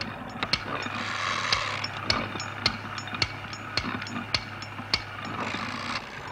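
Mechanical levers click sharply, one after another.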